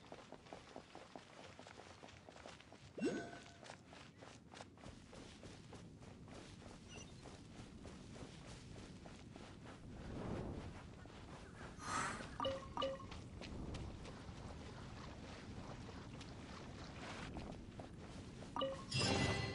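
Footsteps patter quickly over grass and earth.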